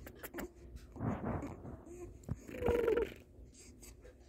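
A baby coos and babbles softly.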